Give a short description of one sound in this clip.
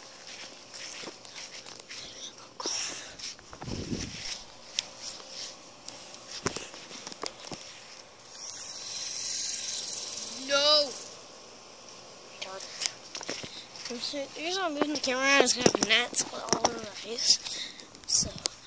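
Flip-flops slap and shuffle on grass with each step.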